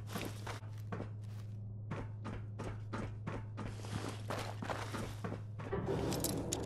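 Footsteps crunch over scattered debris.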